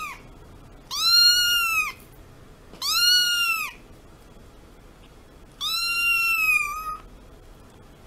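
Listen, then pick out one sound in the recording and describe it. A kitten meows loudly and close by, in high, drawn-out cries.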